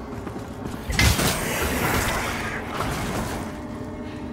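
Wooden beams crash and splinter apart with a loud burst.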